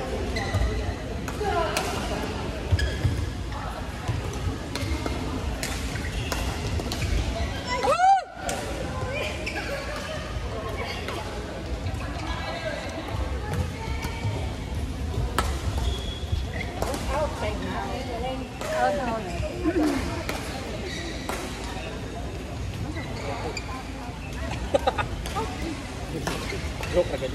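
Shuttlecocks are struck by rackets with sharp pops, echoing in a large hall.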